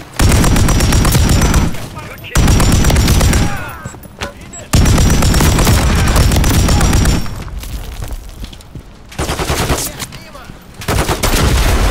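A rifle fires loud rapid bursts, with pauses between them.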